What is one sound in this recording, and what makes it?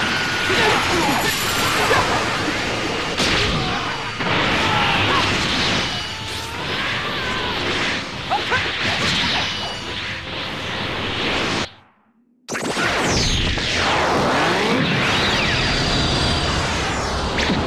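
Video game energy blasts burst and explode.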